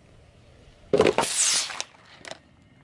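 A carton bursts under a car tyre.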